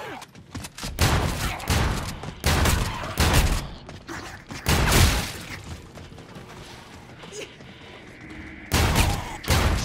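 A shotgun fires in loud, booming blasts.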